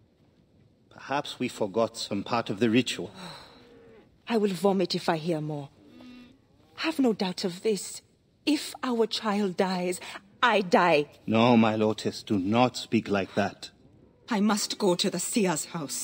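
A woman speaks with emotion, up close.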